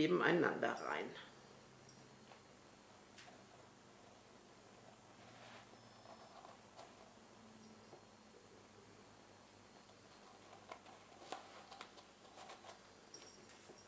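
Stiff paper crinkles softly under fingers.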